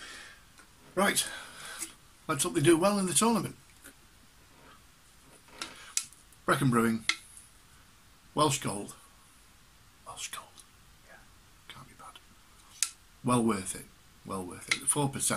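An older man talks calmly and close to a microphone, in short bursts with pauses.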